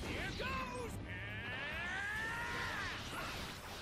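An energy blast roars and whooshes.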